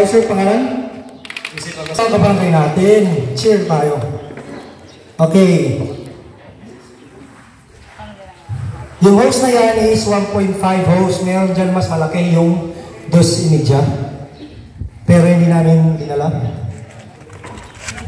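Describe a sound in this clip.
A man speaks loudly to a group through a loudspeaker.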